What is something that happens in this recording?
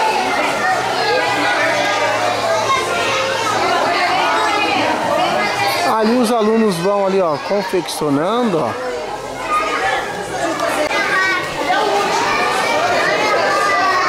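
Children and young men chatter in a lively crowd nearby.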